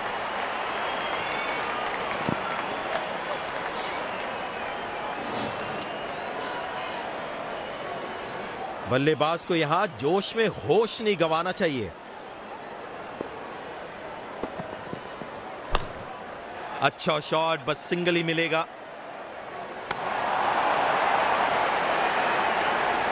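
A large crowd cheers and murmurs in a stadium.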